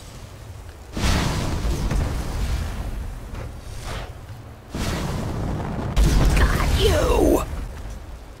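Loud electric crackling bursts out in several powerful blasts.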